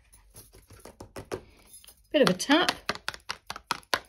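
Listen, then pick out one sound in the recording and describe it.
Card peels away from paper.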